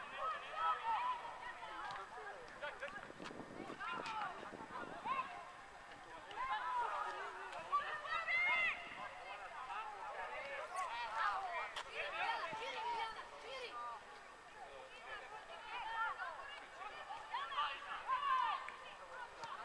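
Young men shout to each other across an outdoor pitch, some distance away.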